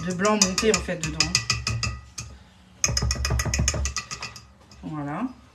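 A whisk clicks rapidly against a metal bowl.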